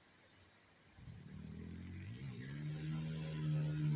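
A motorcycle engine revs up again.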